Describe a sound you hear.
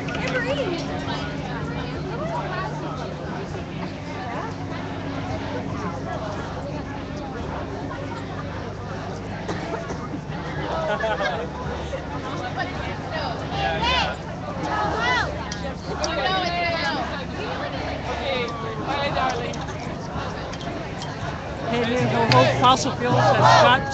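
A crowd of people chatters and calls out nearby outdoors.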